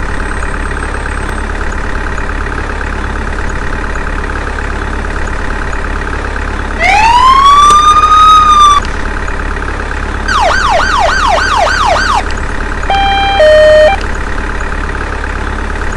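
An ambulance engine idles with a steady hum.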